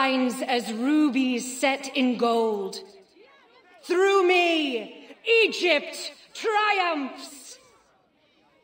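A woman proclaims loudly and with passion.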